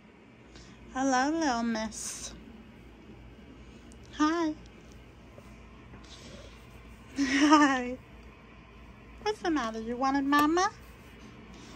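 A baby coos and squeals in short bursts.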